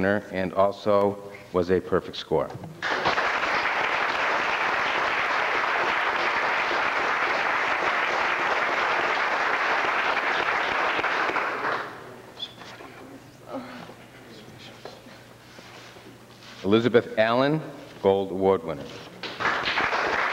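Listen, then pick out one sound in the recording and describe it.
A man speaks calmly into a microphone.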